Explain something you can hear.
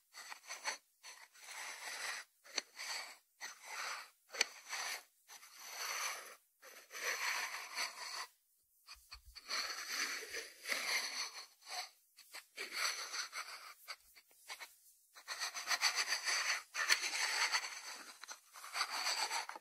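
Fingertips tap and scratch on a ceramic lid.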